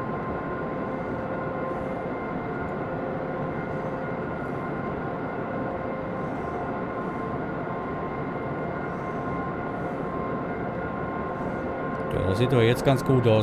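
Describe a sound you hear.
A train engine hums steadily while rolling along the track.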